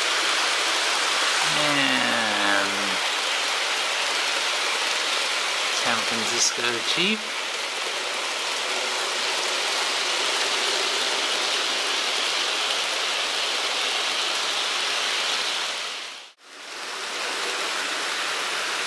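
A model train rumbles steadily along its track.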